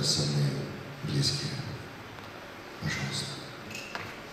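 An elderly man speaks slowly into a microphone in a large hall.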